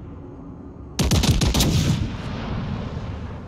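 A battleship's heavy guns fire a salvo with a deep, booming blast.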